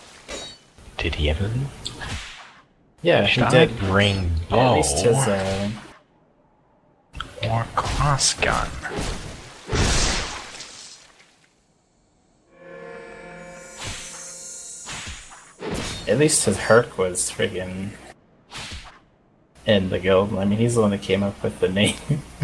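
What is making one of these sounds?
Swords clash and clang with metallic strikes.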